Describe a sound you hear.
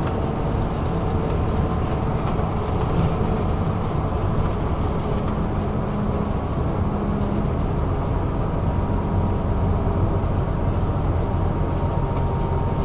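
A vehicle's engine hums steadily with road rumble from inside a moving vehicle.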